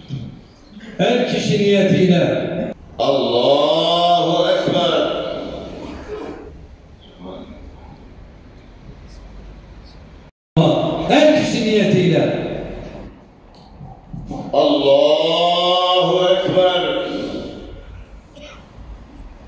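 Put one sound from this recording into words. An elderly man chants a prayer loudly through a loudspeaker, echoing outdoors.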